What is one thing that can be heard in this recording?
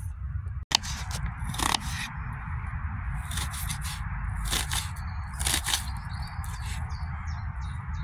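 A knife slices through an onion on a wooden board.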